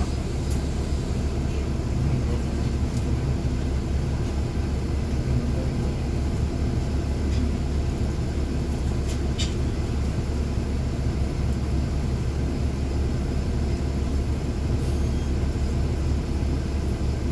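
A bus engine rumbles low and steady from inside the bus.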